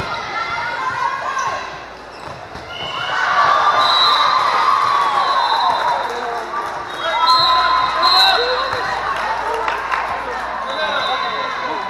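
A volleyball is struck with sharp thumps.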